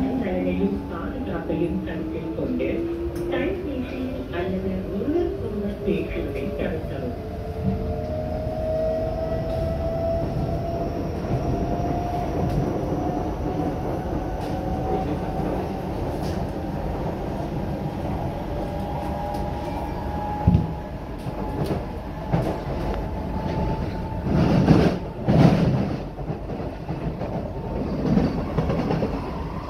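A train's electric motors whine, rising steadily in pitch as it speeds up.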